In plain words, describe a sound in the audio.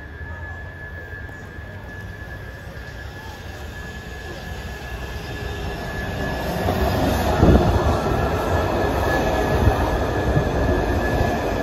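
A metro train approaches and rumbles louder as it pulls in along the rails.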